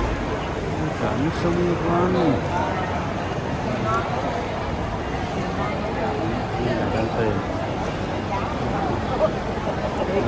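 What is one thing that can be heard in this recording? Suitcase wheels roll across a tiled floor.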